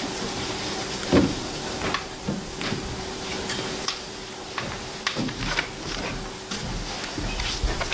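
Paper cards tap against a board.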